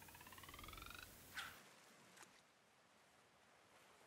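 A fishing line whips out and lands in the water with a small splash.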